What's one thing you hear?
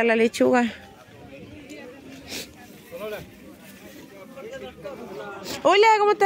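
A crowd of shoppers chatters outdoors at a distance.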